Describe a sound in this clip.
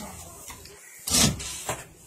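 A cloth wipes across a whiteboard.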